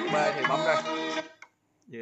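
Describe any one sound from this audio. A button clicks on a record player.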